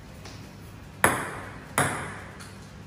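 A ping pong ball bounces sharply on a table.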